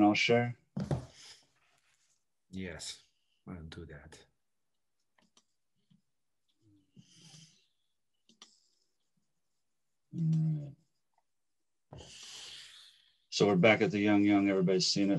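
A middle-aged man speaks calmly over an online call, with pauses.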